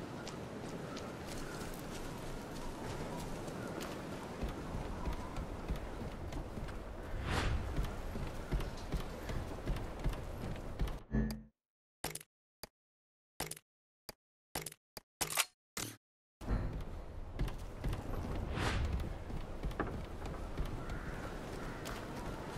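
Footsteps run through grass and over a wooden floor.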